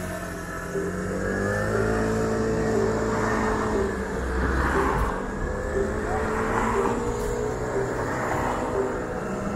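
A motorcycle engine hums steadily while riding at low speed.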